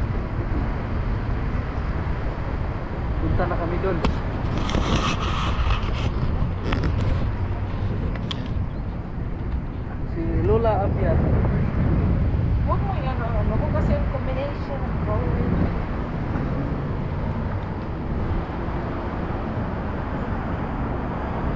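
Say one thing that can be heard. Wind blusters over the microphone outdoors.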